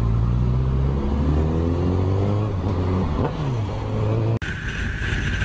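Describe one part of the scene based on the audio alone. A motorcycle engine revs up and drops in pitch as it shifts gears.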